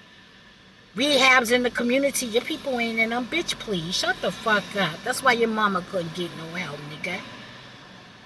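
A woman speaks with animation close to the microphone, her voice rising in pitch.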